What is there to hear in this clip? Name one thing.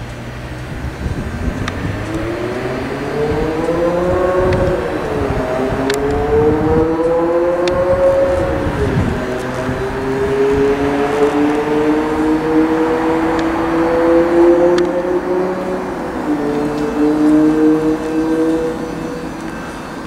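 An electric train pulls in with a whining motor that rises and falls in pitch.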